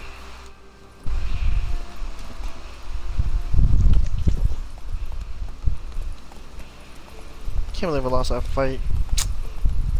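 Horse hooves thud along a path at a gallop.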